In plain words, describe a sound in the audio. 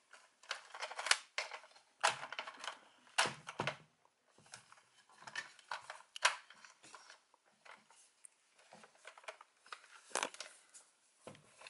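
Plastic toy parts click and clatter as hands fold and snap them together.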